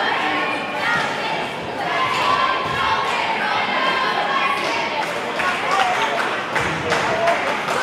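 Cheerleaders chant in unison.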